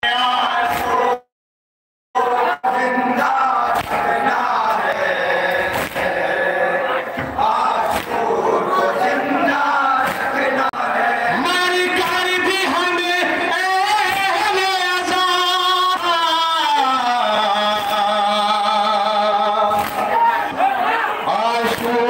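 A crowd of young men beats their chests in rhythm.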